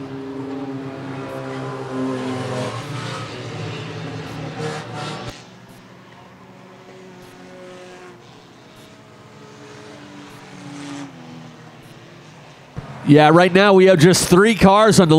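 Racing car engines roar and drone as cars speed around a track.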